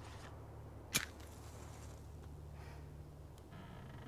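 A match flares and lights a candle wick.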